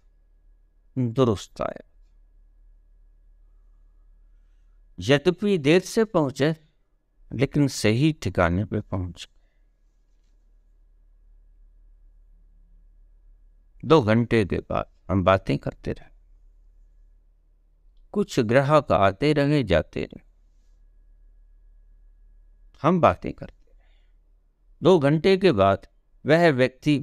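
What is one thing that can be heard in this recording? An elderly man speaks calmly and close to the microphone, in short bursts with pauses.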